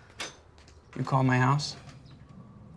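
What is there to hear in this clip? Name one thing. A man speaks briefly up close.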